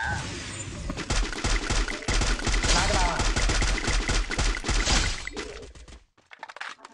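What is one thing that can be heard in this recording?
Rifle gunshots crack in rapid bursts.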